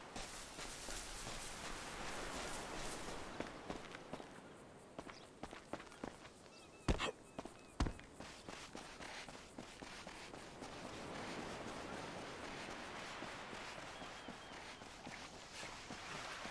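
Footsteps run quickly over grass, rock and sand.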